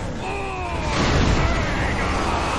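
A vehicle crashes into a trailer with a heavy thud.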